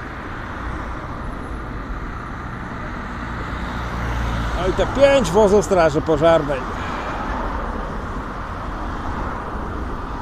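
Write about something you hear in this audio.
Heavy fire engines rumble past on the street.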